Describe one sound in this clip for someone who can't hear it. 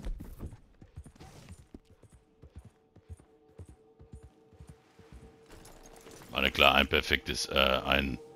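A horse's hooves thud over grassy ground.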